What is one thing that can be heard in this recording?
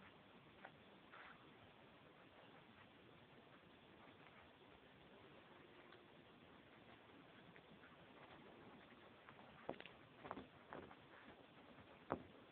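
A Pomeranian puppy snuffles and rummages with its nose in a rug.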